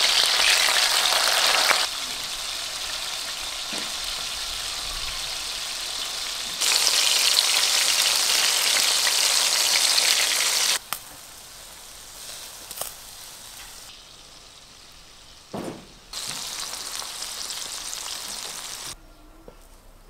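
Food sizzles loudly in hot oil.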